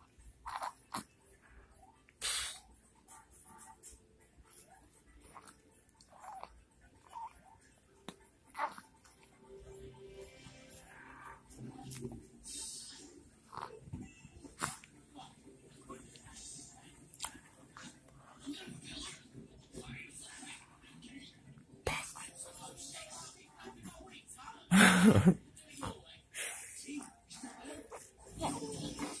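A baby coos and gurgles close by.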